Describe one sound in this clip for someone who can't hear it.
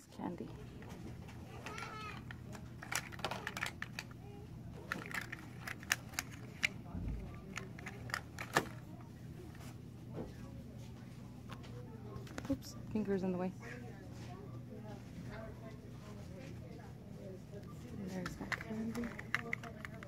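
Plastic candy toys click and tap as a hand handles them.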